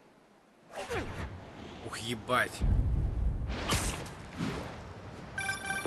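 Wind rushes loudly past during a fast swinging fall.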